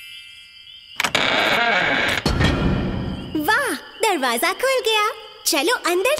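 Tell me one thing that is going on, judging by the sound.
A young girl speaks cheerfully.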